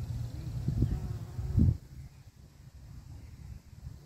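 A bee buzzes close by among flowers.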